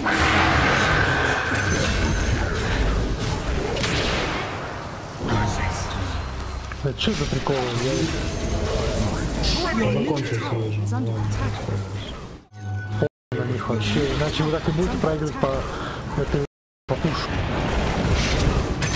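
Magic spells crackle and burst in a fantasy battle.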